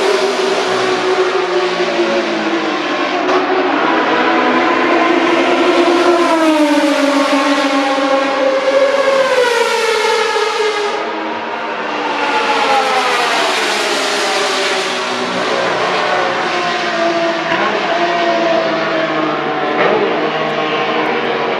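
Racing car engines scream loudly as cars speed past one after another, their pitch rising and falling.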